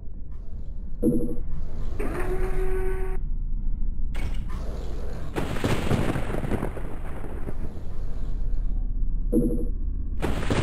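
A short electronic pickup chime sounds twice.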